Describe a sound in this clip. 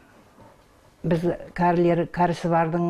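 An elderly woman speaks calmly close by.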